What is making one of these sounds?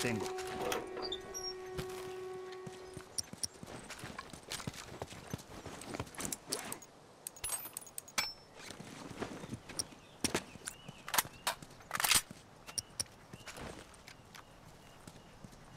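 Footsteps run on dirt and gravel.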